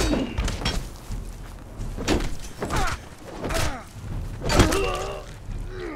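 Swords clash and hit in a fight.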